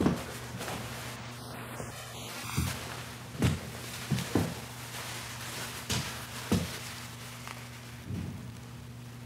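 A jacket's fabric rustles and thumps as it is pulled on and adjusted.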